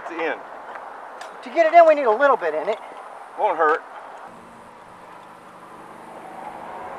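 A man works a tyre off a wheel rim.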